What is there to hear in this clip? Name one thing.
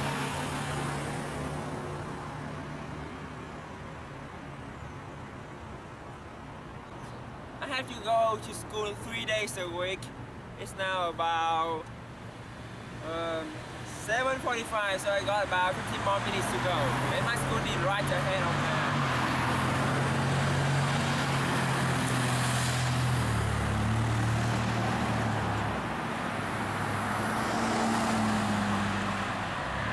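Traffic rumbles steadily nearby.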